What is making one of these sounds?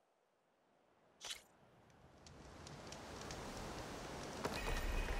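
A campfire hisses and crackles outdoors.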